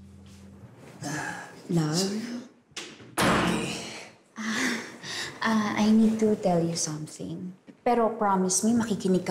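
A woman talks excitedly and close by.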